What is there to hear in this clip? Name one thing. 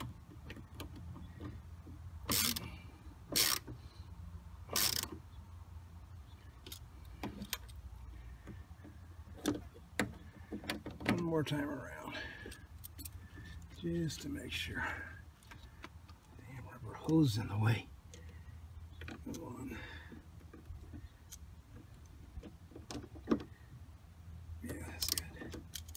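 Small plastic and metal parts click and tap.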